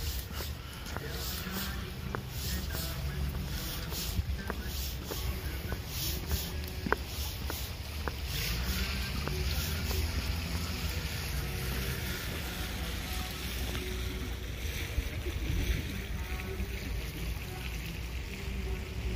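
Wind blows and rumbles steadily outdoors.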